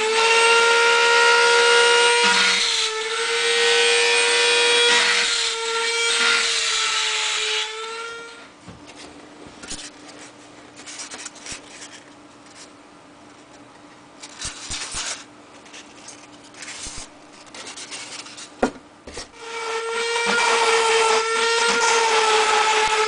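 A cutting machine whines steadily as it carves through foam.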